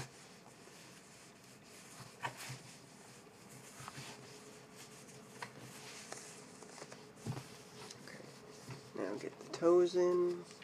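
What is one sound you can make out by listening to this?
Hands rustle a sock as it is pulled and smoothed.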